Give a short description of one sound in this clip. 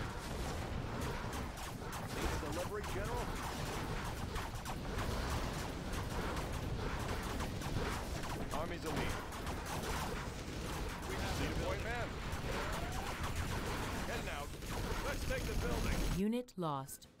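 Gunfire and explosions rattle and boom in a battle.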